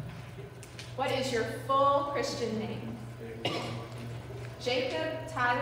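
A woman speaks nearby in a large echoing hall.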